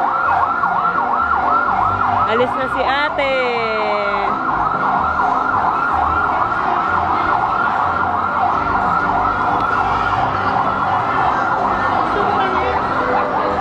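An ambulance siren wails rapidly and steadily close by.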